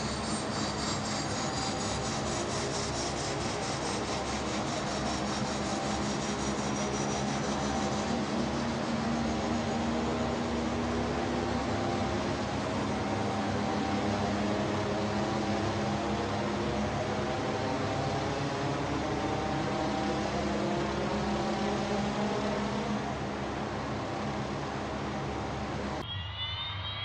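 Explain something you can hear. A propeller engine drones and whines steadily.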